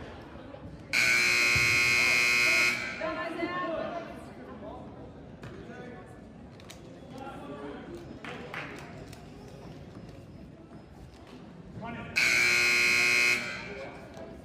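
A referee blows a long, loud whistle.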